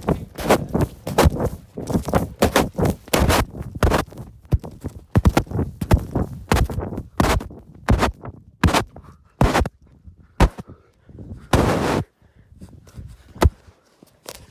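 A device tumbles down a sand slope, thumping and scraping against the sand.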